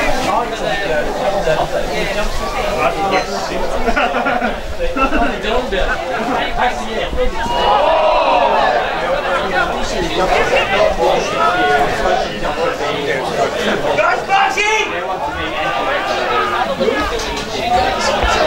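A crowd of spectators cheers and shouts from the sidelines.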